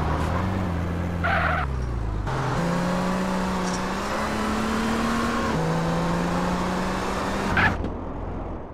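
A car engine revs and hums as it drives.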